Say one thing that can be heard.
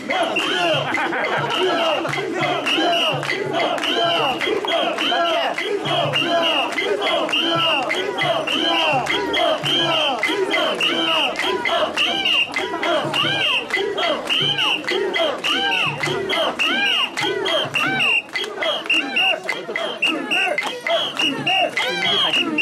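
Hands clap in rhythm nearby.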